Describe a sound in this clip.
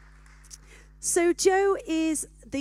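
Another woman speaks through a microphone.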